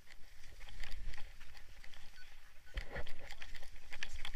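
Boots crunch on snow as a man runs.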